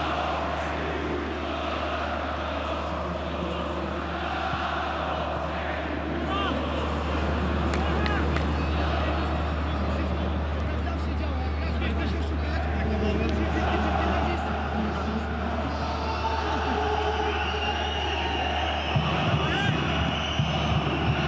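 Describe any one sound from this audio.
A large stadium crowd chants and sings steadily.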